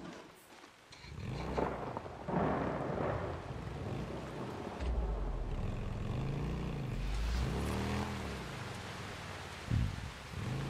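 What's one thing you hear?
A motorbike engine rumbles and revs.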